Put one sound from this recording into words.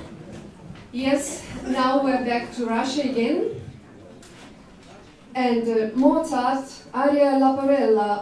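A woman sings in a hall.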